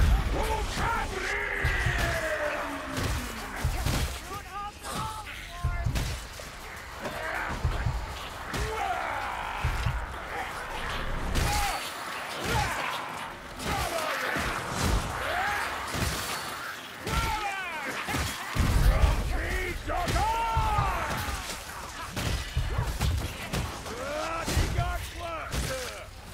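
Creatures screech and shriek in a frantic horde.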